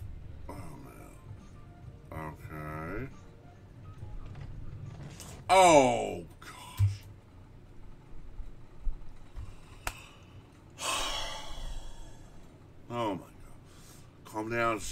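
A middle-aged man exclaims and talks with animation into a nearby microphone.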